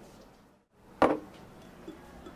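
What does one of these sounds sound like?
A glass knocks down onto a hard counter.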